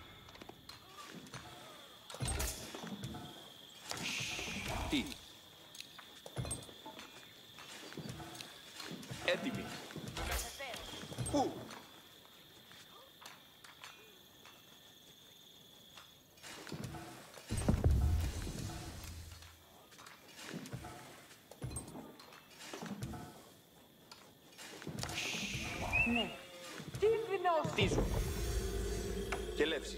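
Game sound effects click and chime.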